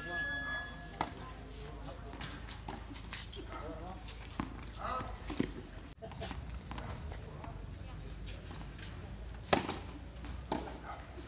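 Tennis balls are struck with rackets, with sharp pops outdoors.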